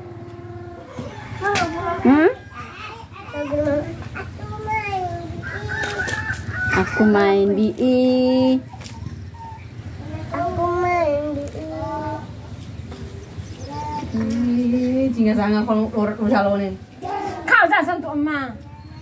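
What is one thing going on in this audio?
Children talk and call out to each other close by, outdoors.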